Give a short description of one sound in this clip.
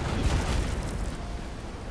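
Waves splash loudly against a wooden ship.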